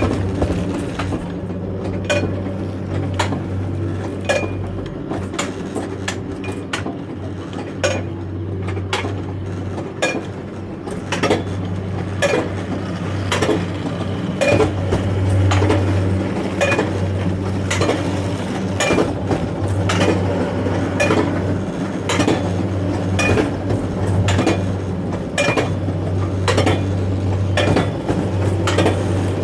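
A ratchet on a coaster track clicks in an even rhythm as a cart is hauled uphill.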